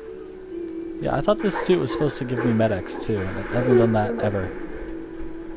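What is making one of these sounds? A creature snarls and growls.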